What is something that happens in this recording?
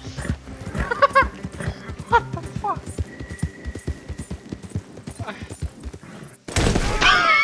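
Horse hooves thud rhythmically on a dirt path.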